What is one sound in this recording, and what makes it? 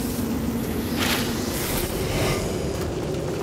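A heavy hammer swings and strikes with a magical burst.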